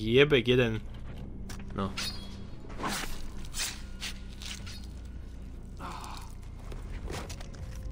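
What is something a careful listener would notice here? A knife slices wetly through flesh.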